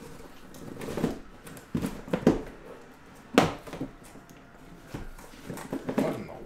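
Plastic-wrapped boxes knock onto a table.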